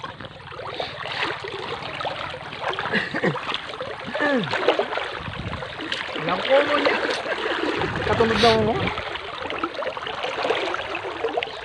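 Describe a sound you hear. River water splashes around legs wading through it.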